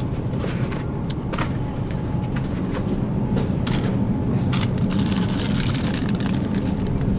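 Refrigerated cases hum steadily.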